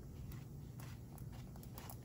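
A spatula scrapes against a pan.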